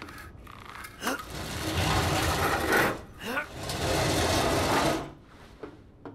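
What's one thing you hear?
A metal ladder clanks and rattles as someone climbs it.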